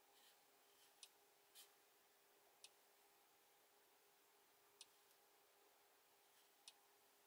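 A finger taps softly on a touchscreen.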